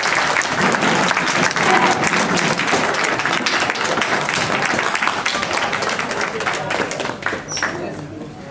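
A crowd chatters in a large room.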